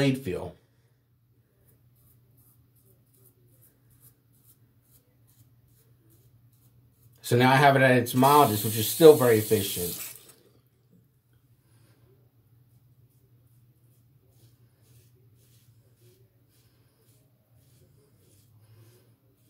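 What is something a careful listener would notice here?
A razor scrapes softly across stubble.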